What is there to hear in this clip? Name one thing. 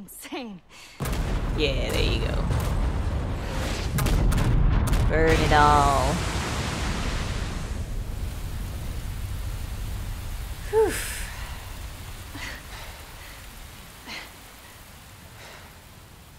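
Heavy explosions rumble deeply and slowly fade away.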